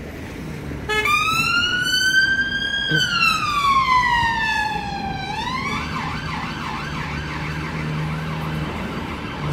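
A police siren wails nearby, rising and falling.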